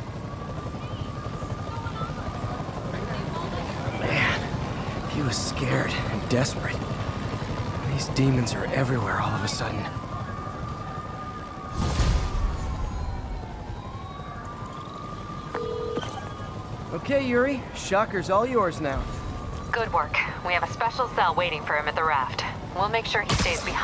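A police siren wails on and off nearby.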